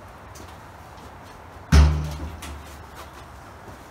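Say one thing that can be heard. A heavy sheet of metal clanks as it is set down.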